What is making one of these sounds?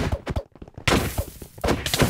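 Sword blows land with short thuds.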